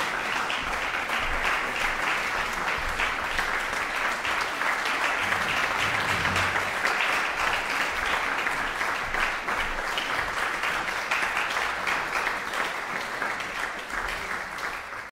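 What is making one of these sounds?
An audience applauds steadily in a hall.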